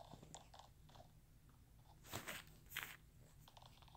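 Soft keyboard taps click on a phone.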